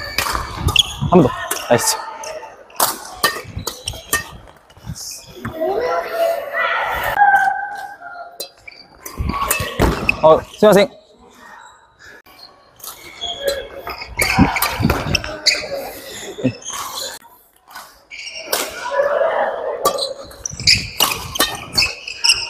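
Sneakers squeak sharply on a wooden court floor.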